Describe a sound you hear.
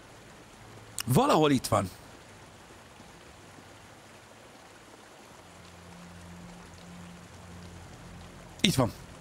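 A man exclaims briefly into a close microphone.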